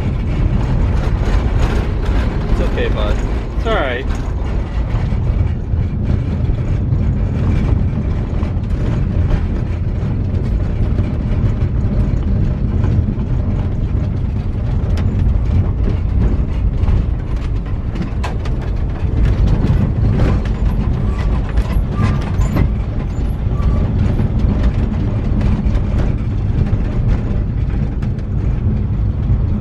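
Tyres crunch and rattle over a gravel road.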